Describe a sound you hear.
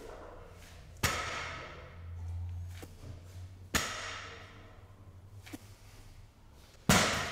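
Heavy weight plates bang down hard on the floor.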